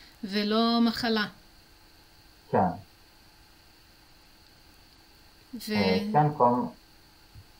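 A young woman speaks warmly through a microphone over an online call, in short phrases.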